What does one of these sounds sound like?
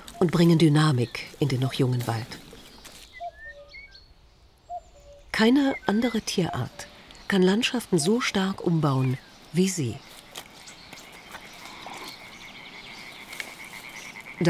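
A beaver gnaws on a twig with crunching bites.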